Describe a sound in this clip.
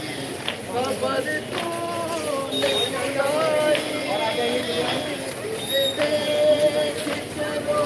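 Men beat their chests with their hands in rhythm.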